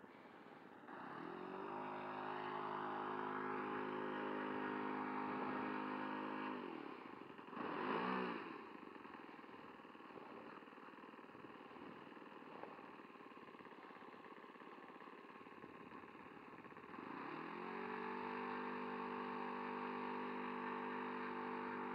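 A small model plane engine buzzes steadily close by.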